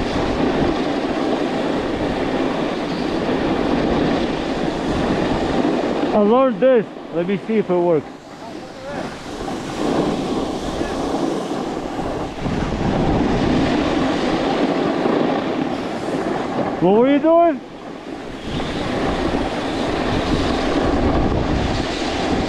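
A snowboard scrapes and hisses over packed snow close by.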